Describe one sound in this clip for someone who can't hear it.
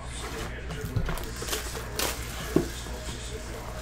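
Plastic wrap crinkles.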